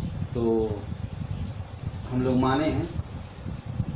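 A man speaks calmly in short bursts, close by.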